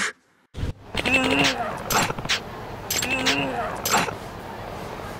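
A man shouts in panic.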